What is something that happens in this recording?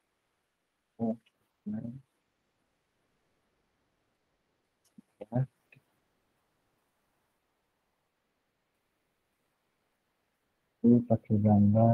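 A young woman speaks calmly in short bursts over an online call.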